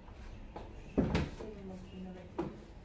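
A cardboard box rustles and thumps.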